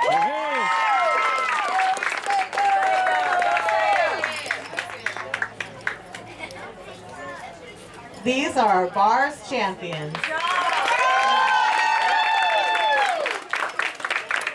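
A crowd of children cheers and shrieks loudly.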